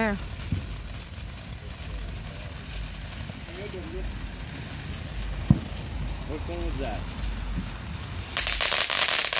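A firework fountain hisses and crackles steadily.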